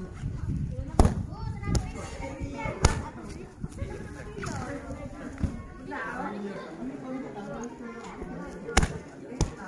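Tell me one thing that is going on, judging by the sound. Kicks thump sharply against a padded shield.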